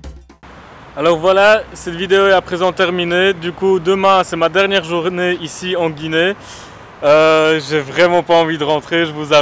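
A young man speaks close up, with animation.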